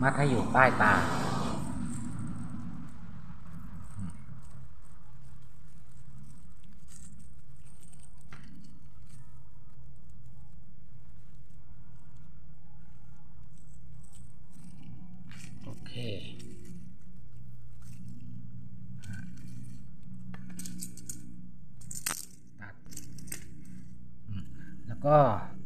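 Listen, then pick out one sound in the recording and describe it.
Green bark tears softly as it is peeled from a thin stalk.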